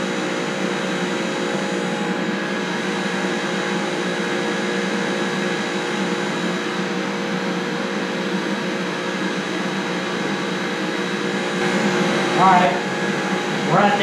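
An electric motor hums steadily close by.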